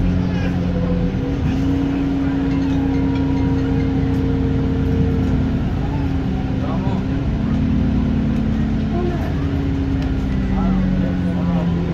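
A bus engine drones and whines steadily as the bus drives.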